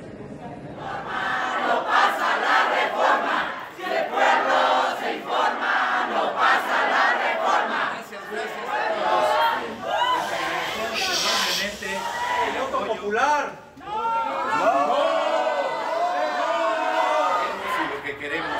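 A crowd of men and women chants loudly in unison.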